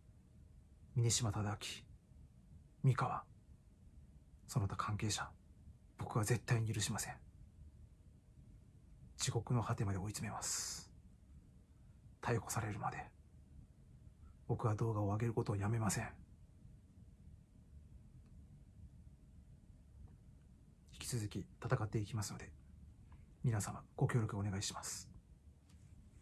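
A young man speaks calmly and close up in short phrases, with pauses between them.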